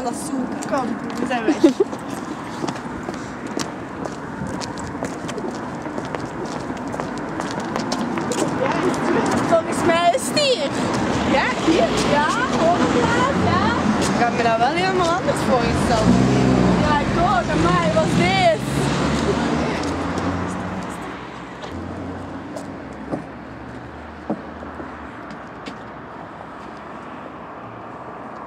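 Footsteps walk on pavement.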